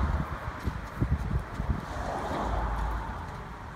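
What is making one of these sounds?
A horse's hooves thud softly on dirt.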